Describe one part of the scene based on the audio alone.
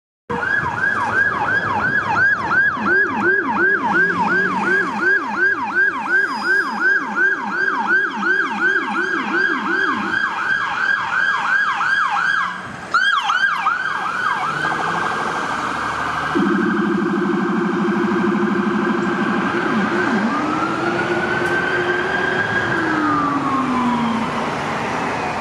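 A siren yelps rapidly and then wails, loud and close.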